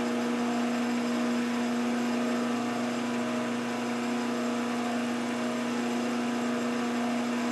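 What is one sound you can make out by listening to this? A milling machine spindle hums steadily.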